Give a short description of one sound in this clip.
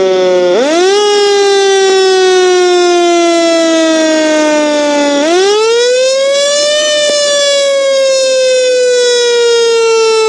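A fire truck siren wails loudly, rising and falling slowly.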